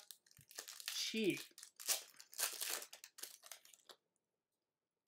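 A foil wrapper crinkles and tears as hands rip it open.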